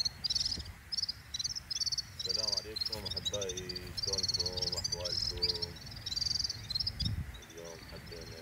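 Water laps gently against a stone wall.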